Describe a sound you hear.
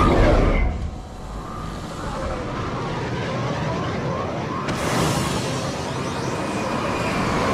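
A shuttle's engines hum and whine as it flies in.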